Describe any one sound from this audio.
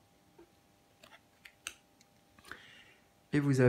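Playing cards rustle and tap softly as they are handled.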